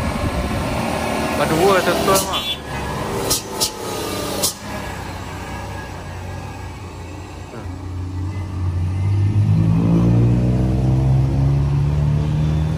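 A heavy truck engine rumbles close by as the truck rolls past.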